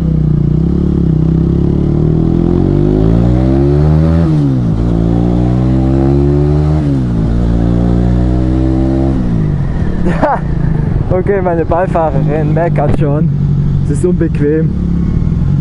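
A motorcycle engine revs up through the gears, rising in pitch between shifts.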